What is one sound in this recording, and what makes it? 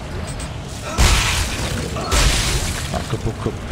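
Loud bursts of game gunfire blast and crackle.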